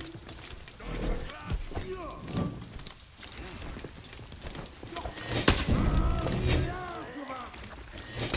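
A man grunts and shouts with effort.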